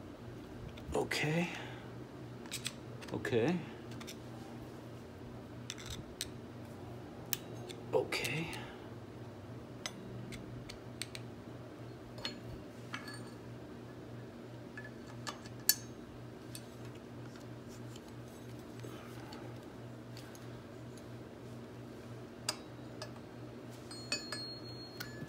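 Metal tools click and clink against metal parts.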